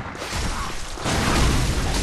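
A gun fires with a loud blast.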